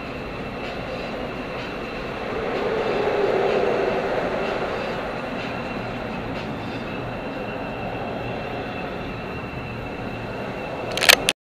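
Traffic roars past outside the car.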